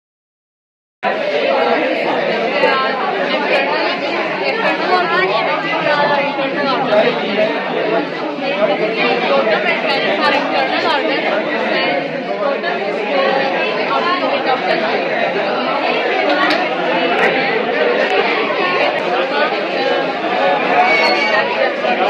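A crowd of young people murmurs and chatters in an echoing room.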